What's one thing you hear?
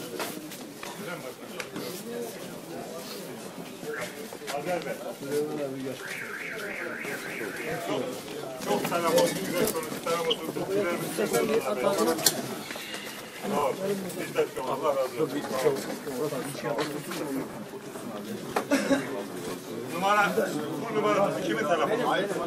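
Several men talk and call out over each other nearby.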